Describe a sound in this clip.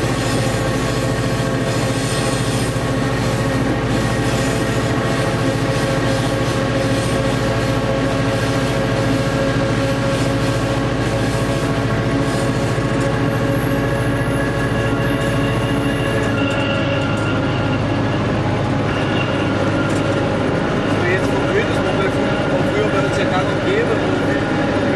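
Train wheels rumble and clatter along the rails.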